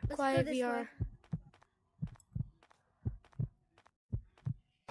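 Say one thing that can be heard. Heavy footsteps thud slowly and evenly.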